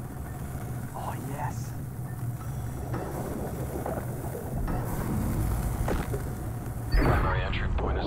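A cutting torch hisses and crackles against metal bars.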